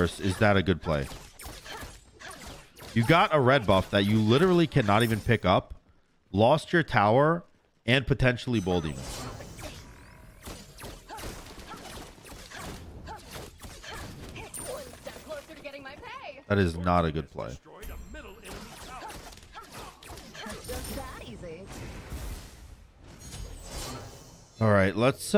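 Game weapons clash and magic effects burst.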